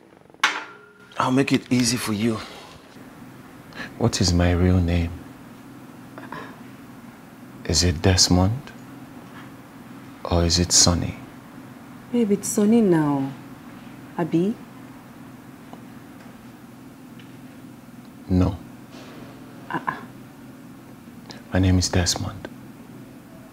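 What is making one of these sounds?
A man speaks in a tense, questioning voice close by.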